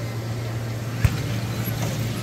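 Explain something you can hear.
A ball thumps as a power wheelchair strikes it.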